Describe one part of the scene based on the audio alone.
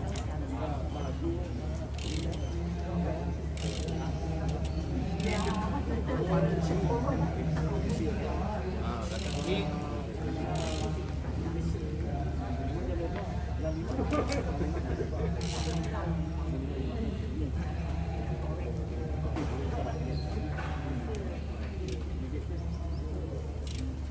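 A cloth wipes and rubs against a bicycle frame.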